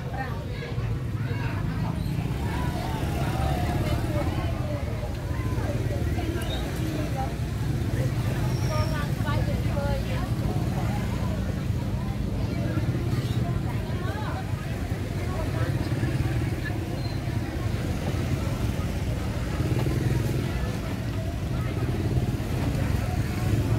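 A crowd of men and women chatter in the background.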